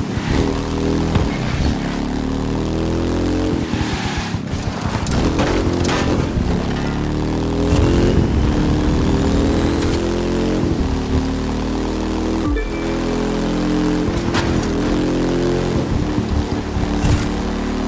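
A motorcycle engine roars loudly, rising and falling in pitch as it shifts gears.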